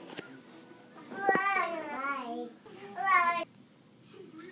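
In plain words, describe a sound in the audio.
A young child speaks in a high voice close to a phone's microphone.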